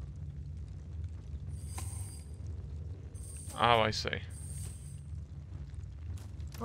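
Torch flames crackle softly.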